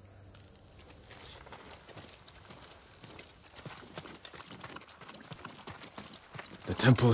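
Footsteps run quickly along a dirt path.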